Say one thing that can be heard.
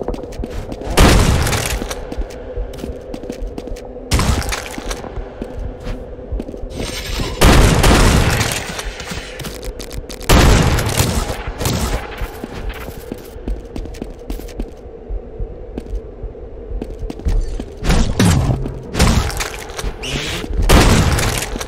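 Heavy impacts and crunching hits burst out in a fight.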